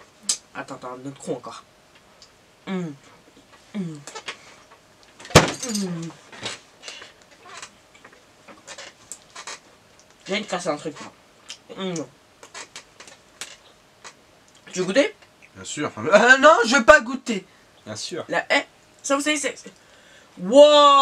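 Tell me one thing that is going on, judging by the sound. A teenage boy talks animatedly close by, with pauses.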